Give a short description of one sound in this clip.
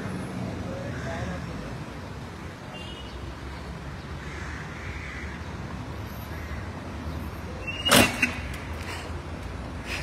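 A large SUV drives slowly past on asphalt.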